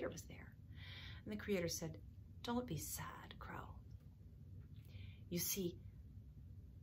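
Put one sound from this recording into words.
A middle-aged woman speaks calmly and close to the microphone.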